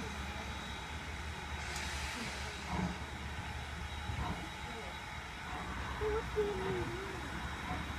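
A steam locomotive chugs steadily in the distance as it approaches.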